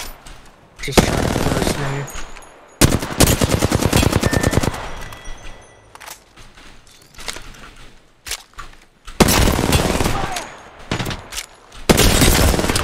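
Automatic rifle gunfire rattles in bursts.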